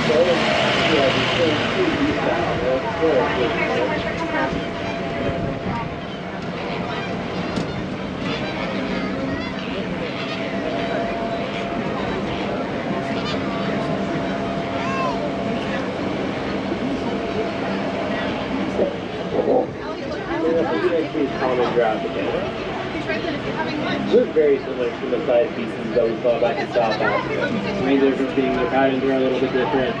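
Adult passengers chatter nearby, in lively voices.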